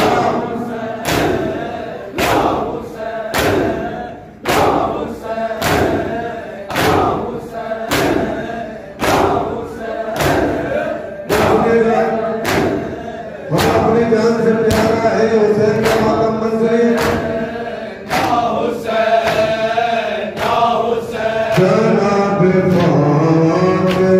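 A crowd of men chants along in unison.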